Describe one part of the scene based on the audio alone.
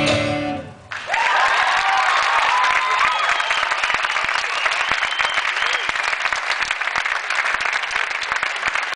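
An audience claps loudly in a large hall.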